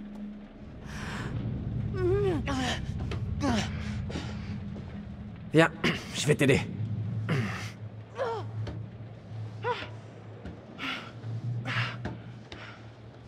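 A young woman grunts with effort as she climbs.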